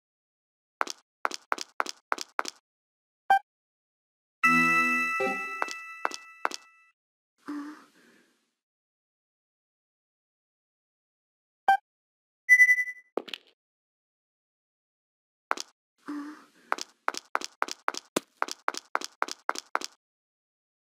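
Quick, light footsteps tap on a stone floor.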